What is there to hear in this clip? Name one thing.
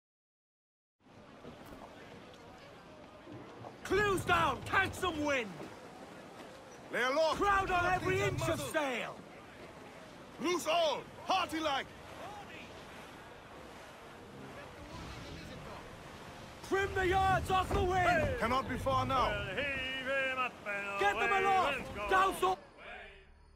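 Waves splash and rush against a sailing ship's hull.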